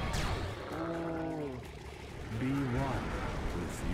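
A heavy blast booms in a battle game.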